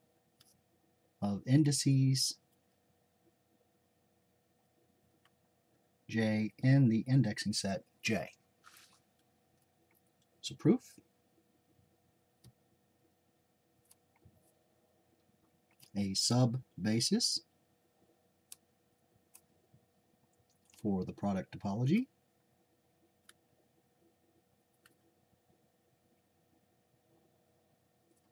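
A felt-tip marker squeaks and scratches softly on paper.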